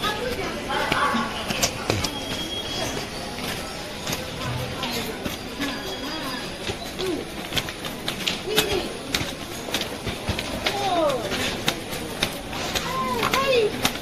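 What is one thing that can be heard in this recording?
Footsteps climb concrete stairs.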